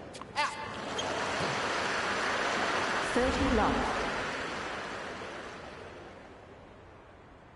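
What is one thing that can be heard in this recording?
A crowd cheers and applauds in a large arena.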